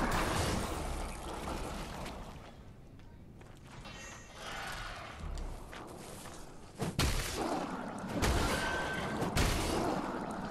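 Footsteps rustle through forest undergrowth.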